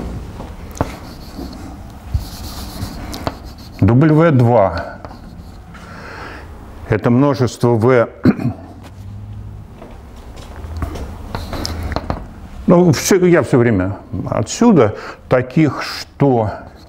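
Chalk taps and scrapes on a board.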